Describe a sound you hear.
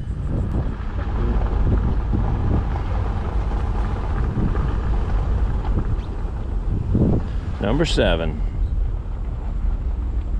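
Wind buffets loudly against a moving open vehicle.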